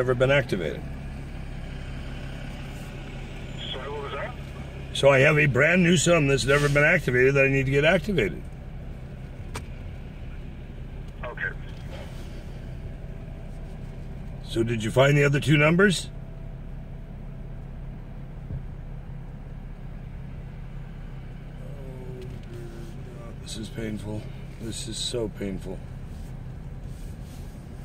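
A car engine hums low and steady as the car rolls slowly.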